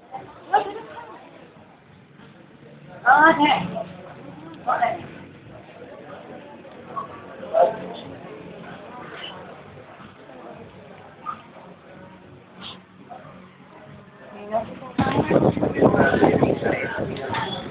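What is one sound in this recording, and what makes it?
Several young people chat and laugh nearby.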